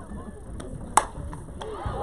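A softball bat cracks sharply against a ball.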